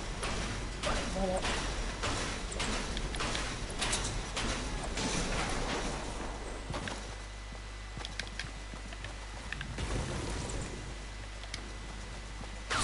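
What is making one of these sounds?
Wooden ramps and walls snap into place with quick knocks.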